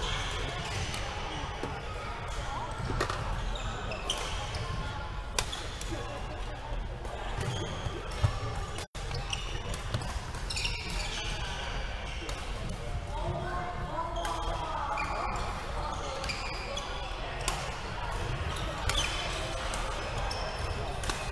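Badminton rackets smack shuttlecocks in a large echoing hall.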